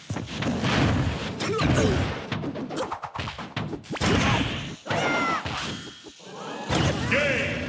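Punches and kicks thud and crack during a fast fight.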